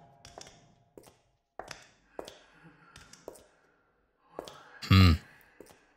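Footsteps thud on a hard floor at a slow pace.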